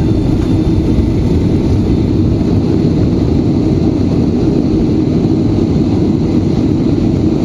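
A jet engine roars loudly as an airliner rolls down a runway.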